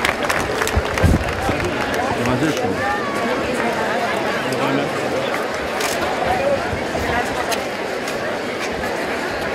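A crowd murmurs and chatters nearby.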